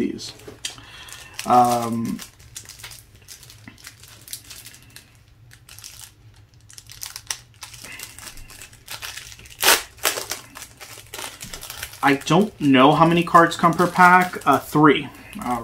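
A plastic wrapper crinkles and tears as it is pulled open.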